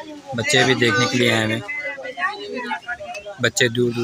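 Children chatter nearby.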